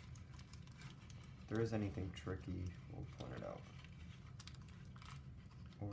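Paper crinkles and rustles softly as it is folded by hand.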